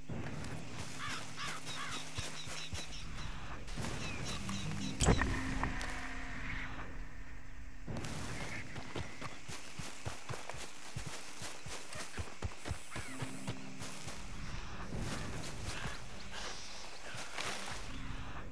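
Footsteps crunch through dry leaves and undergrowth.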